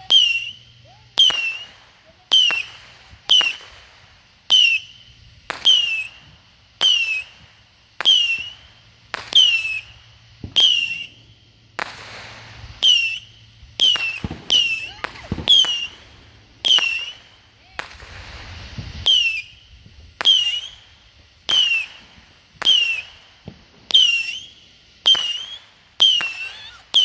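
Firecrackers bang sharply, one after another at a steady pace.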